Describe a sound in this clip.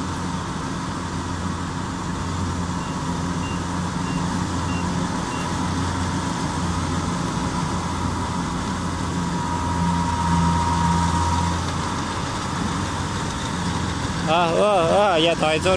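A combine harvester engine drones steadily nearby.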